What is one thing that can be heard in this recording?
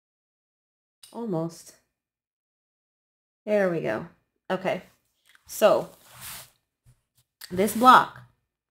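A woman speaks calmly and close up, in short phrases.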